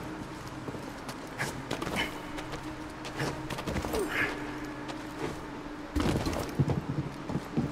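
Footsteps patter on stone as a figure runs.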